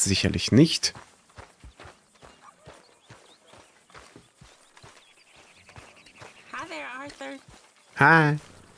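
Footsteps tread over grass at a steady pace.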